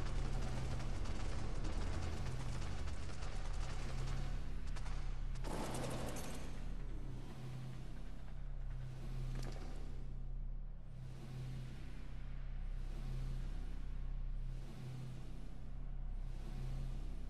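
Lava rumbles low and steady.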